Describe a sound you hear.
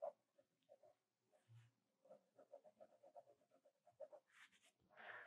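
A pencil scratches and taps lightly on paper.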